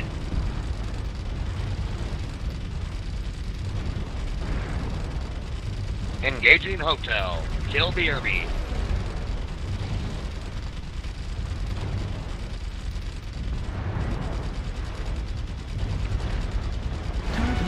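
Heavy guns fire in rapid, rumbling bursts.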